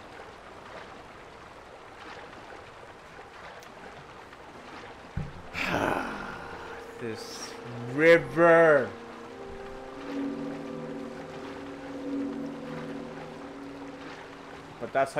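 Water splashes softly as a swimmer paddles steadily.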